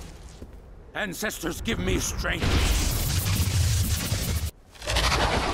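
Lightning crackles and booms.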